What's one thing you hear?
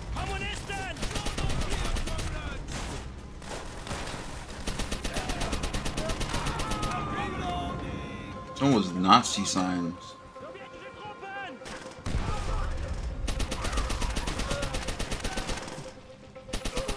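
A gun fires in rapid bursts.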